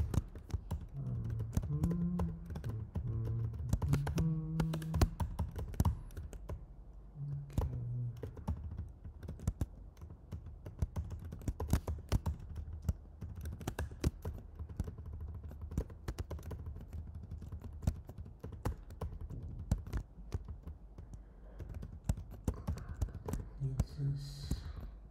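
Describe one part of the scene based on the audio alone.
Keyboard keys click rapidly.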